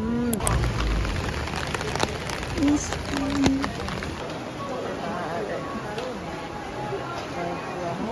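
A crowd murmurs in a covered shopping street.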